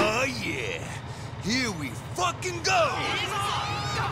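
A man shouts excitedly.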